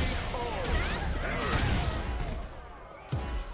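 Punches and kicks land with heavy impact sounds in a fighting game.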